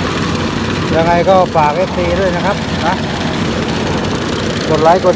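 A man speaks nearby over the engine noise.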